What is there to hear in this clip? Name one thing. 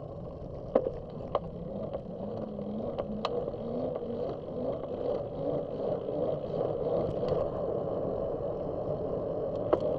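A vehicle engine hums, slowly rising in pitch as it speeds up.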